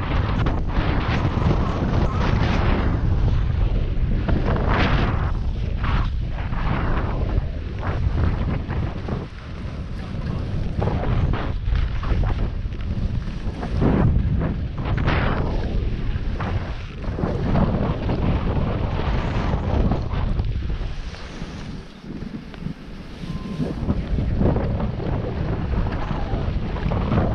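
Wind rushes loudly past close by.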